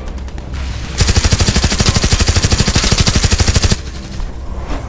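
A machine gun fires in a rapid, loud burst.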